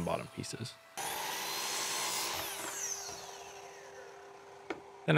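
A power saw whirs loudly and then winds down.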